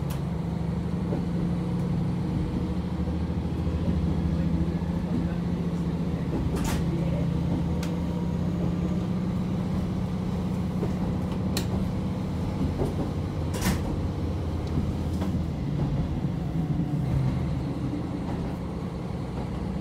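Tyres roll on a snowy road.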